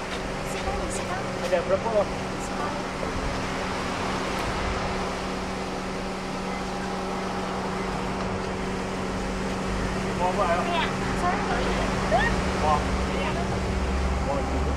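Young women chatter nearby outdoors.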